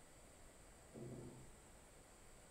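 A man hums a short low note close to a microphone.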